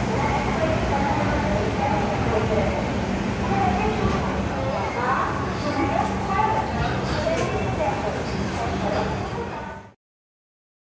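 A train rumbles and clatters steadily along the rails.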